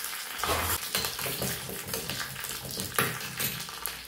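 A metal spoon stirs and scrapes in a small metal pan.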